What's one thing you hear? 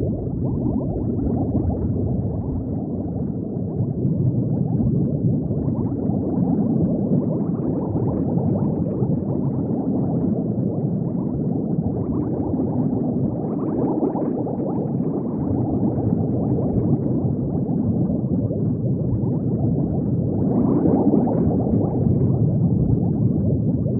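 Bubbles burble and rumble steadily underwater.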